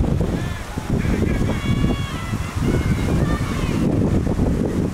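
Young women call out across an open field in the distance.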